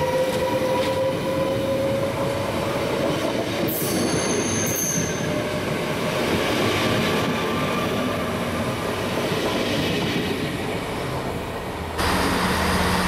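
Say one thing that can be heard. A train rushes past at speed with a loud roar.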